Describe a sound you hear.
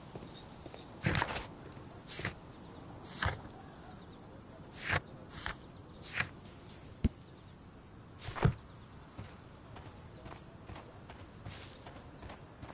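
Footsteps walk on stone paving and climb steps.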